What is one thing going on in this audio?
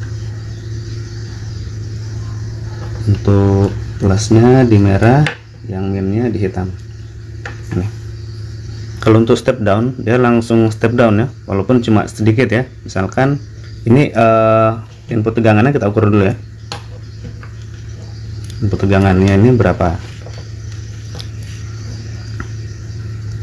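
Metal clips click softly as they are handled and attached.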